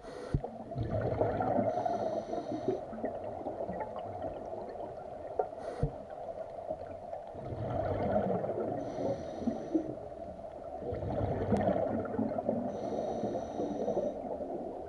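Air bubbles gurgle and rush in bursts from a diver's breathing gear underwater.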